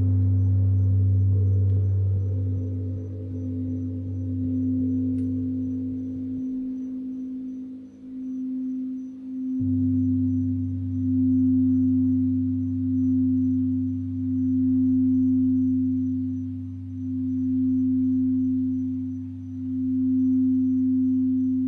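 A crystal singing bowl hums with a steady tone that swells and dips as it is rubbed.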